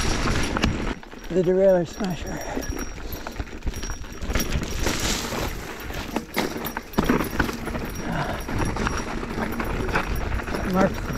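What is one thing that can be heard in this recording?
Bicycle tyres crunch and roll over a rough, rocky dirt trail.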